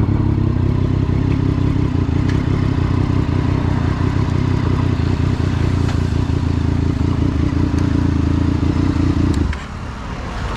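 A motorcycle engine idles with a steady low rumble close by.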